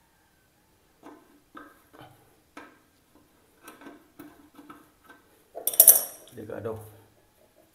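A metal wrench clicks and scrapes as it turns a bolt.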